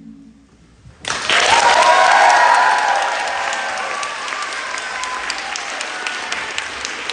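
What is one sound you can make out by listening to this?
An audience cheers and screams loudly.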